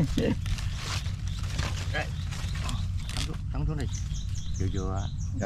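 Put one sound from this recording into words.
Dry leaves and twigs rustle and crackle close by.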